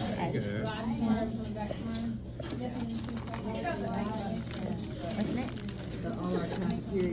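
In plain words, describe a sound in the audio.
A small girl chatters in a high voice.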